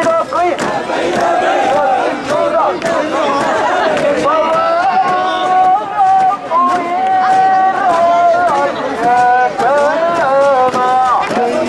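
A large crowd of men chants loudly and rhythmically outdoors.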